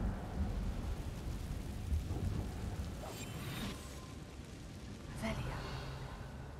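A magic spell crackles and bursts with sparks.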